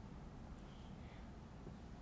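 A young woman speaks softly and close.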